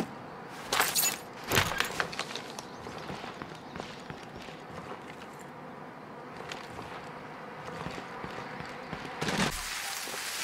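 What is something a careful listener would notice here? Footsteps thud softly on wooden floorboards.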